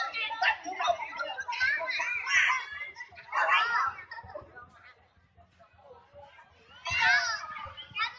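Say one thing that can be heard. A crowd of people shouts and cheers excitedly outdoors.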